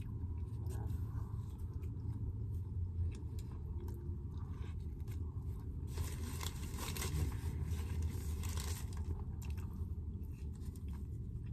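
A young woman chews close to the microphone.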